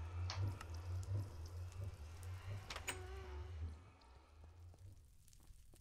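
Fire crackles nearby.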